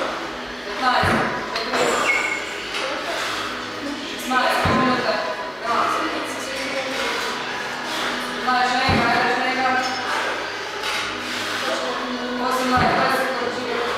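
A man's feet thud onto a hard floor as he drops from gymnastic rings.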